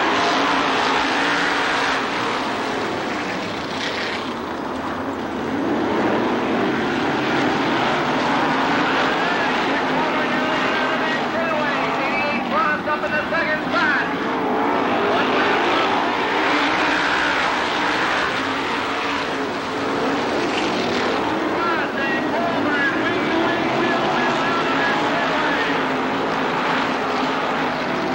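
Several racing car engines roar loudly and steadily throughout.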